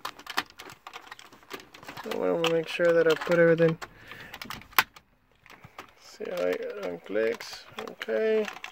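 A plastic connector clicks and rattles as it is handled.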